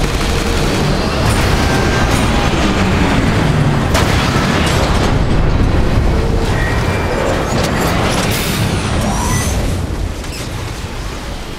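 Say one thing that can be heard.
A huge explosion roars and rumbles deeply.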